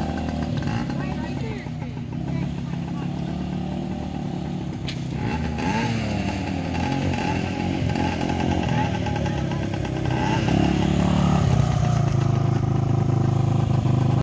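A small quad bike engine hums and revs nearby, growing louder as it approaches.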